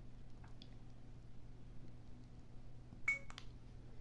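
Fingers click a small plastic button.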